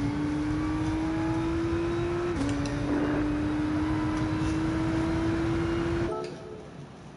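A racing car engine roars steadily, dropping in pitch at a gear shift, then cuts off abruptly.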